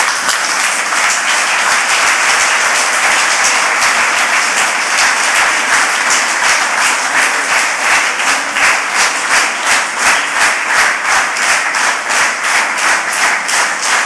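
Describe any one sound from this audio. A large audience applauds loudly, with the clapping growing more rhythmic toward the end.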